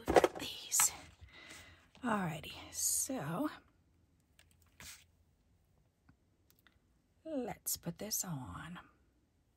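Card stock rustles and crinkles under hands.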